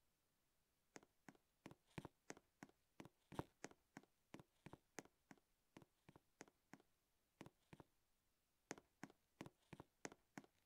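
Quick footsteps patter on a hard surface.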